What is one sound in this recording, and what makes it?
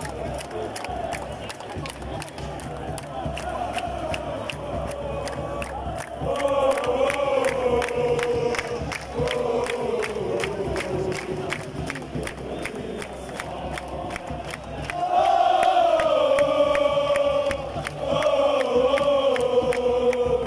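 A large stadium crowd chants and sings together loudly outdoors.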